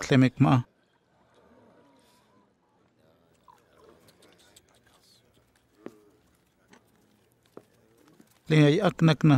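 Several men talk quietly over a meal.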